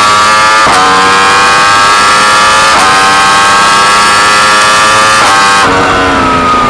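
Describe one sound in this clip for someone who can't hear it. A racing car engine screams at high revs, shifting up through the gears.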